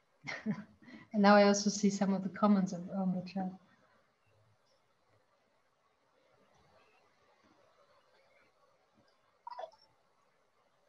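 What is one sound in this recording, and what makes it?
A woman speaks close to a microphone, with animation.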